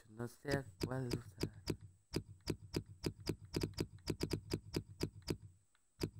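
Short menu clicks tick in quick succession as a cursor moves across letters.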